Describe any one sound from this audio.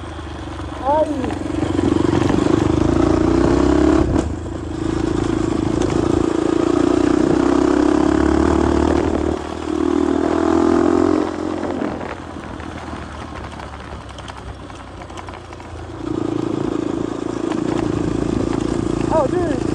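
A dirt bike engine revs and roars up close, rising and falling as it shifts gears.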